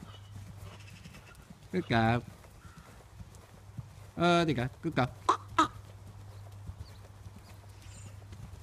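A horse's hooves thud softly on sand at a steady canter.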